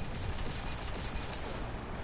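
A rifle fires in a video game.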